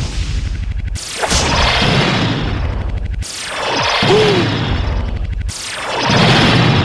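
Magic rings whoosh through the air in bursts.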